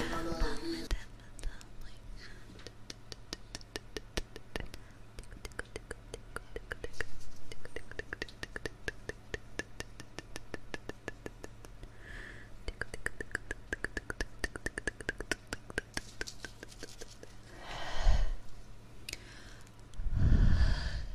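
A young woman whispers very close to a microphone.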